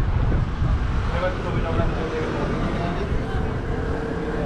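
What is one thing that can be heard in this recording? Many people chat at tables nearby.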